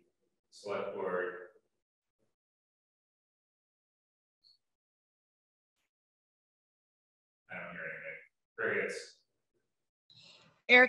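A man speaks briefly over an online call, with pauses.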